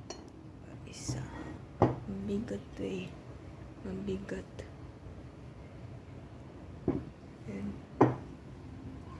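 A ceramic dish knocks on a wooden table.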